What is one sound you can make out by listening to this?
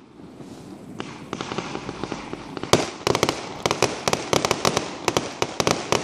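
Fireworks bang and crackle rapidly in the sky.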